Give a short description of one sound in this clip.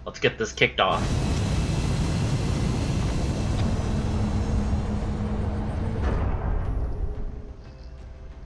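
A spacecraft's engines roar loudly, then fade away.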